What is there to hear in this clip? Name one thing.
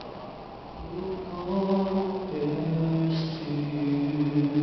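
A young man sings through a microphone.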